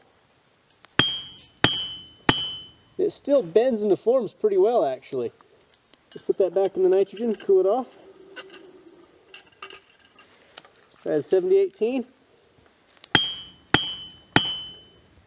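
A hammer strikes metal on an anvil with a bright ringing clang.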